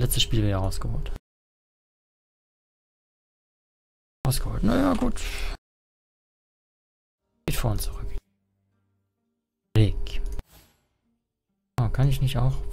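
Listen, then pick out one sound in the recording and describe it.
A young man talks with animation, close to a microphone, with long silent pauses between phrases.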